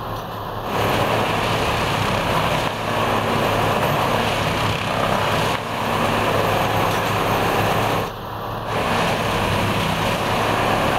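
A heavy track machine's diesel engine rumbles steadily close by.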